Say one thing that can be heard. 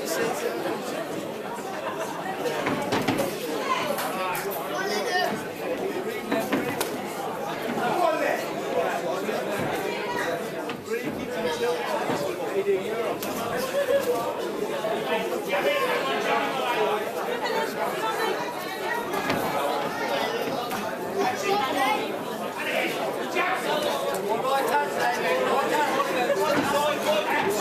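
A crowd of men and women chatters and shouts loudly in a large echoing hall.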